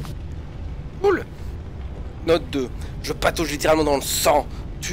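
A young man exclaims loudly and excitedly into a nearby microphone.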